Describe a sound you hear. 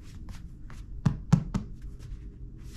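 A hand pats a leather chair.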